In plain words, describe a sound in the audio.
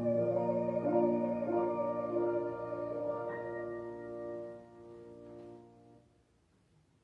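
A piano plays slow, held chords.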